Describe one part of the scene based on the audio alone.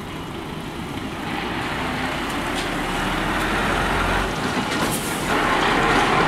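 A lorry engine idles and rumbles close by.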